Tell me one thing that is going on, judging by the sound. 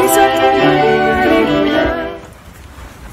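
A piano and a flute play a melody together.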